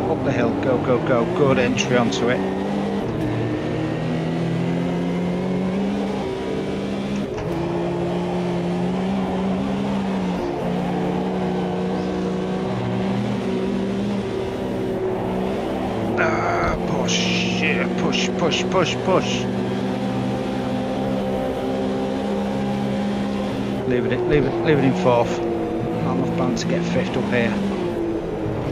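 A race car engine drones loudly and steadily, shifting pitch with gear changes.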